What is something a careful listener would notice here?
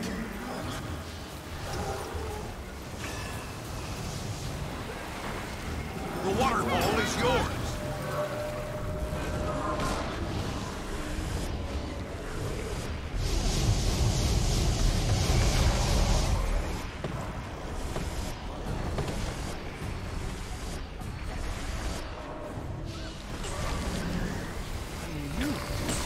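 Game combat sounds of spells and blows clash throughout.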